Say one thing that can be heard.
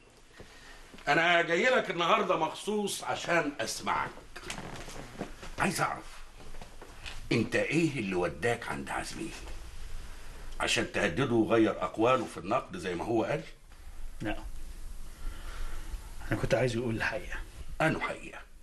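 An older man talks with animation, raising his voice.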